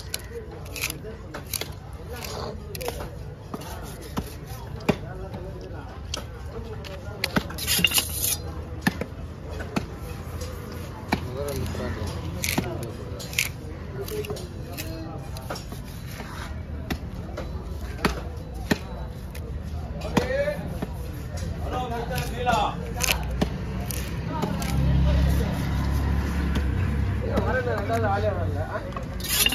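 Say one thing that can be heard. A heavy knife chops and thuds through fish on a wooden block.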